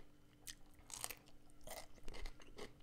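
A man bites into a soft piece of food close to a microphone.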